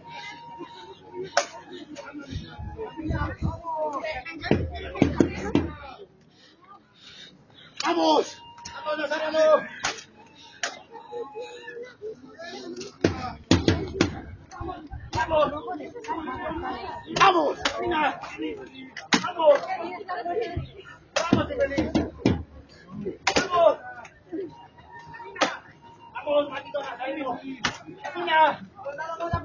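A crowd of men and women talk and call out nearby outdoors.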